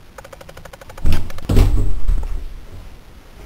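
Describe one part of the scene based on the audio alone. A door swings open with a loud thud.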